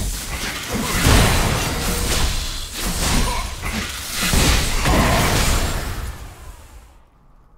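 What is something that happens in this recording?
Fantasy game spells burst and crackle in a fast fight.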